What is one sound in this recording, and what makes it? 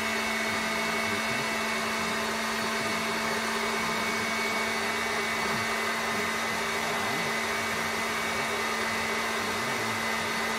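A stand mixer motor hums steadily.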